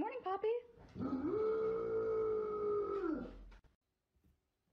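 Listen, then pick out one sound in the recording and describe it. A dog howls long and loud.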